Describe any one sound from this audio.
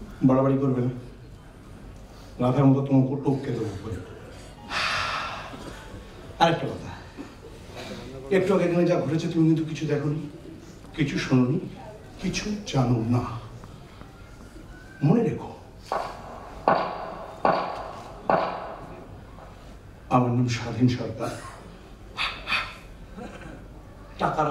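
An elderly man speaks with animation through a microphone on a stage.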